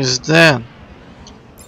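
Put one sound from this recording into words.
A young man speaks briefly into a microphone.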